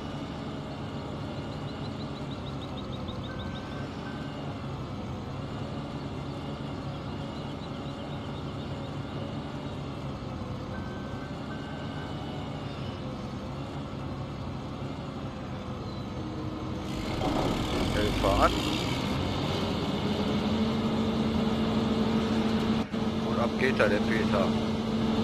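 A combine harvester's engine hums steadily.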